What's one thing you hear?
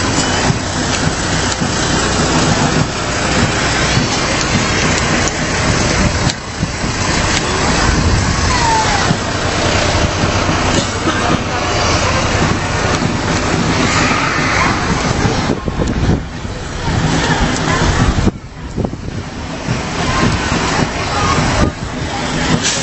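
A fire engine's diesel engine rumbles and idles close by.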